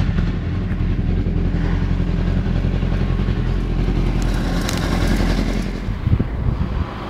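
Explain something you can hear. A motorcycle engine idles close by with a steady rumble.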